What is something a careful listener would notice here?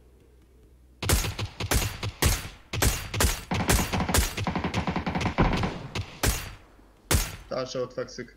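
A rifle fires loud shots in quick bursts.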